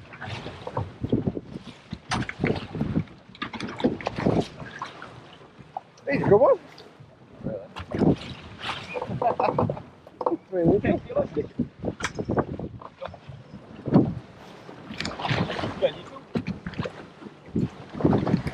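Waves slap and splash against the side of a small boat.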